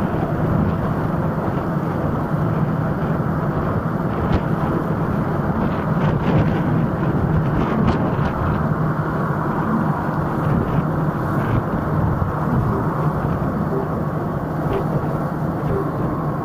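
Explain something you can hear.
A scooter's electric motor hums steadily.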